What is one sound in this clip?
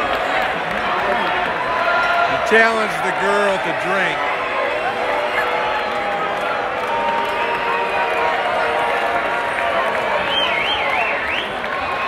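A man sings loudly above the crowd.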